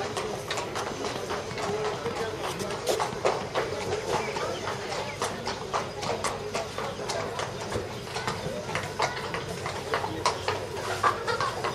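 A horse's hooves thud on sand as it canters.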